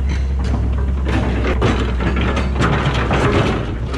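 Wood and metal scrap scrape and crunch under an excavator bucket.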